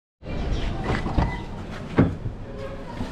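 A car door handle clicks as it is pulled.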